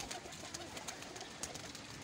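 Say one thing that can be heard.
A pigeon flaps its wings briefly.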